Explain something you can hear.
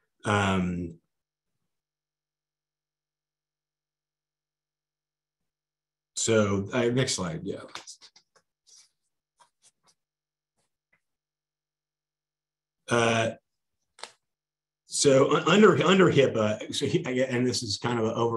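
A middle-aged man speaks calmly through a microphone on an online call, with pauses.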